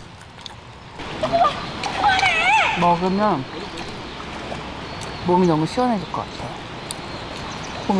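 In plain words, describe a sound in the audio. Water flows gently.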